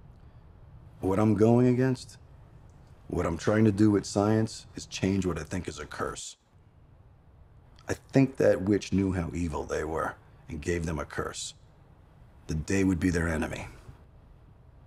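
A middle-aged man talks calmly and close by, in short bursts.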